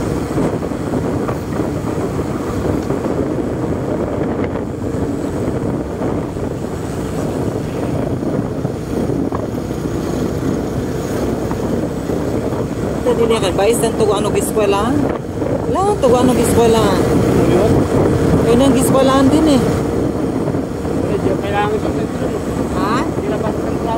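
Wind rushes past, buffeting loudly.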